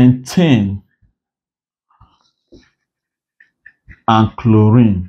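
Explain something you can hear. A man speaks calmly and clearly, as if teaching, close to the microphone.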